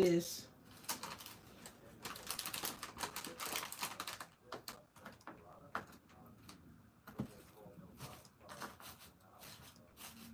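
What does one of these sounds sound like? Plastic packaging crinkles and rustles as hands move things around.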